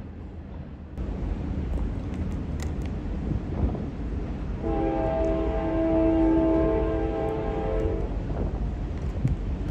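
A freight train rumbles along in the distance.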